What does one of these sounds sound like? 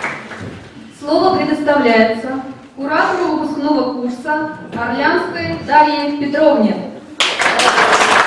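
A young woman speaks clearly through a microphone.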